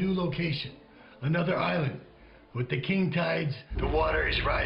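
A middle-aged man speaks tensely into a phone.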